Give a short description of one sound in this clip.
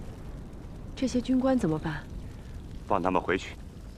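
A woman speaks briefly and calmly nearby.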